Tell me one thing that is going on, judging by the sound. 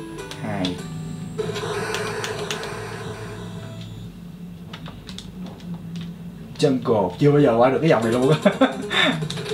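Chiptune video game music plays from a television.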